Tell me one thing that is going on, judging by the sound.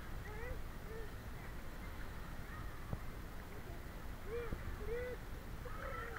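A child splashes while swimming in a pool.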